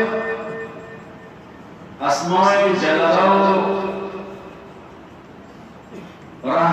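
A man speaks with passion into a microphone, his voice echoing through a loudspeaker.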